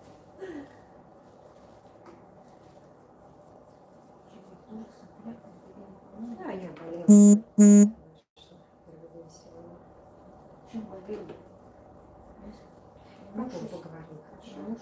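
A brush dabs softly at wet hair.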